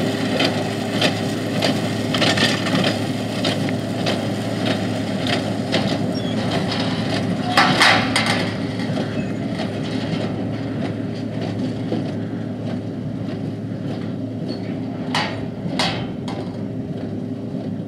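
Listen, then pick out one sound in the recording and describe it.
A bale accumulator clanks and clatters as it moves bales of straw.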